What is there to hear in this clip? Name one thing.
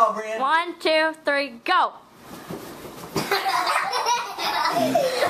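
A young child squeals and shouts excitedly close by.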